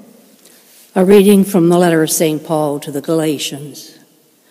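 An elderly woman speaks calmly through a microphone, echoing in a large hall.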